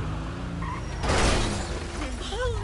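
A car crashes into other cars with a loud thud.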